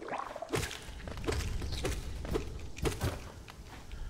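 A blade slashes quickly through the air with sharp swishes.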